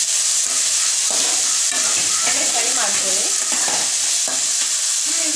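A steel ladle scrapes and clinks against an aluminium wok while stirring.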